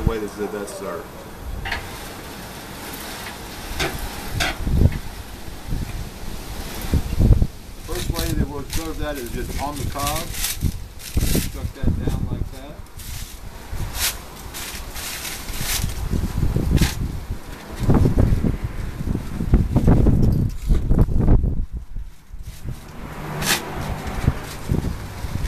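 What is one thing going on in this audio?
A middle-aged man talks calmly and explains, close by.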